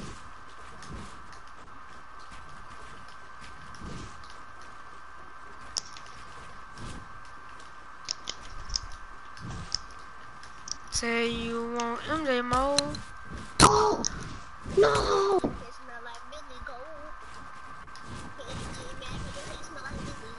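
Short wooden clicks and knocks sound as building pieces snap into place.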